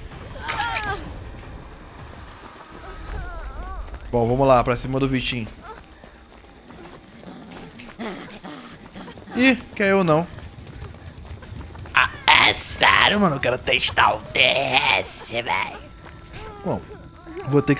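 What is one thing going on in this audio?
A young man talks with animation into a close microphone, now and then shouting excitedly.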